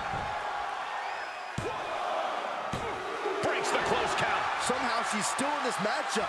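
A referee's hand slaps the ring mat.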